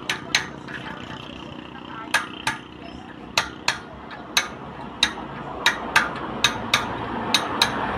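A hammer strikes metal in sharp, ringing taps, mostly in pairs.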